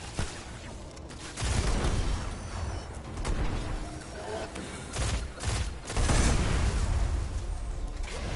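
Gunshots fire and boom in quick bursts.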